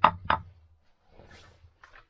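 A small metal bracket clinks as a hand handles it close by.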